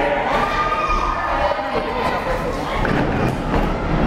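A wrestler's body slams hard onto the ring mat.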